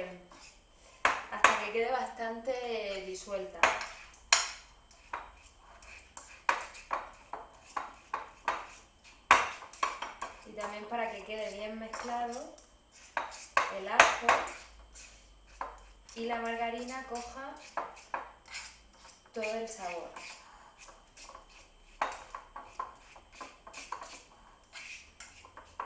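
A fork scrapes and clinks against a bowl.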